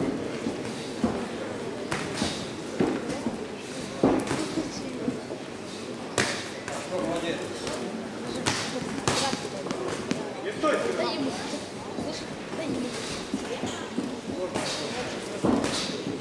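Boxing gloves thud against bodies in quick punches.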